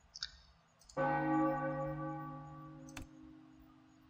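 A game menu chimes as a panel opens.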